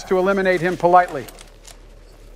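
An elderly man speaks with animation into a headset microphone.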